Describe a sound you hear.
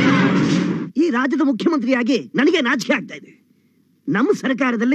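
An elderly man speaks loudly and forcefully.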